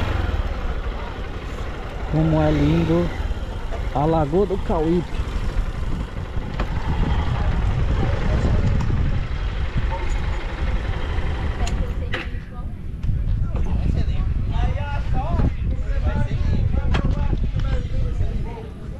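A motorcycle engine rumbles steadily at low speed.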